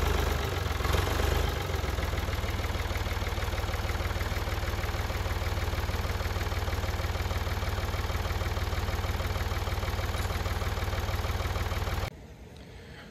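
A heavy machine's engine rumbles steadily nearby.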